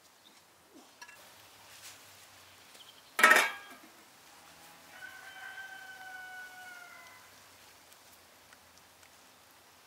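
Water simmers gently in a pot.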